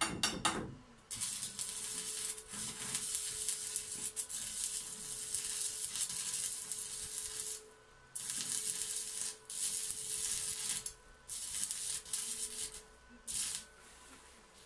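An electric welder crackles and hisses in bursts.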